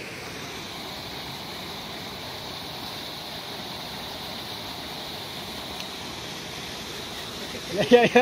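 Water gushes from a pipe into a pond.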